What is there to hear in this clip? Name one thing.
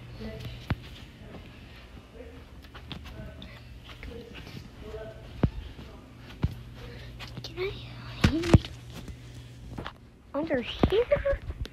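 A boy talks close to the microphone.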